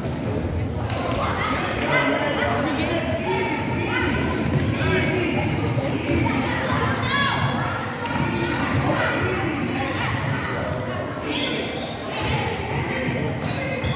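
Children shout and cheer in an echoing gym.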